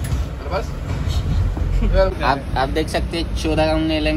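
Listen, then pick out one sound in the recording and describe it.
Metal parts clink together.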